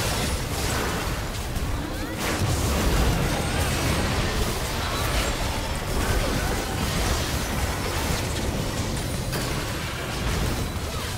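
Magic blasts, whooshes and impacts crash together in a hectic video game battle.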